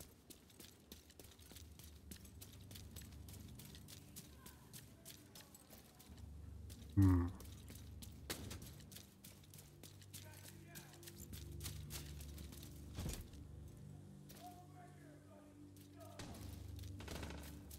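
Footsteps thud quickly on pavement.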